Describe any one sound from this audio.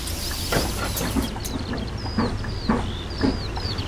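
Rain patters on the windows.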